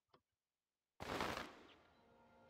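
A bright magical burst whooshes loudly and fades.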